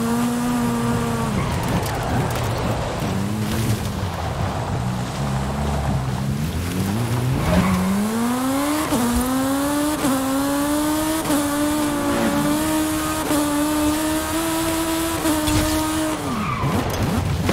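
A small car engine revs hard, rising in pitch as gears shift.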